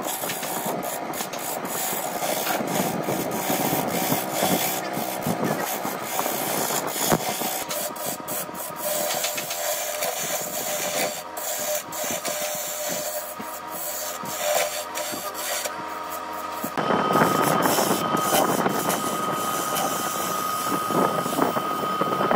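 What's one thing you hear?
A gouge scrapes and shaves against spinning wood.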